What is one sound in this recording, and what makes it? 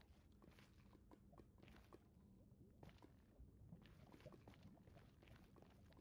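Lava bubbles and pops nearby.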